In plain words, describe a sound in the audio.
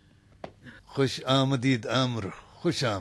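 A middle-aged man speaks warmly and loudly.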